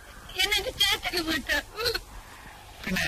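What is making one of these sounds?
A young woman sobs and cries out close by.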